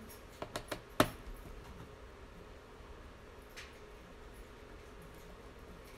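A screwdriver clicks against a small screw.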